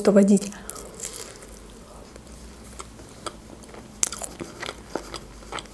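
A young woman chews with soft, wet mouth sounds.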